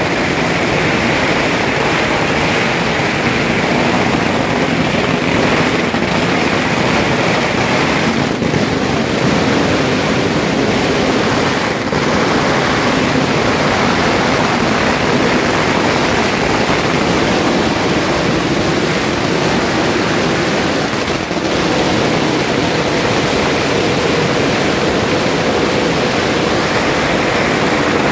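Firecrackers crackle and bang rapidly all around, close by.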